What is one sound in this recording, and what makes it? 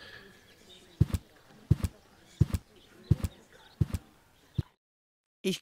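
Footsteps tap steadily across a hard floor.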